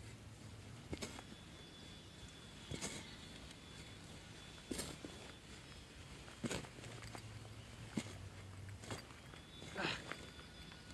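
A spade cuts into soil with dull thuds.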